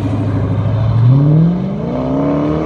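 A muscle car engine roars, rising in pitch as the car accelerates away.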